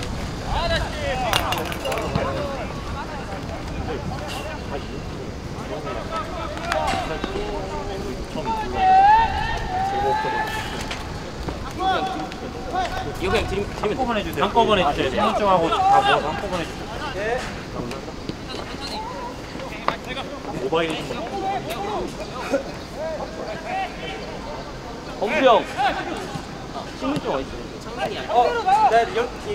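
Young men shout to each other across an open outdoor field.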